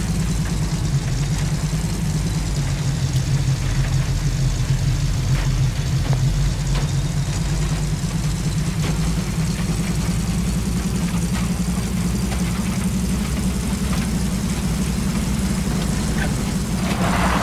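A jeep engine rumbles steadily as it drives.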